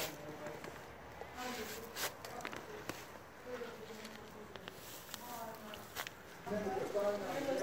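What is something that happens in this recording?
Dry leaves rustle and crackle as a plant is pulled from the ground.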